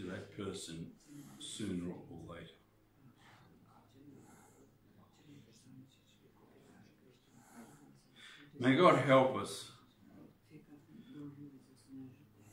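A middle-aged man speaks calmly in a room with a slight echo.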